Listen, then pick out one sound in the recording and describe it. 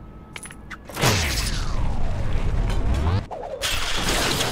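A deep electronic whooshing hum swells and falls.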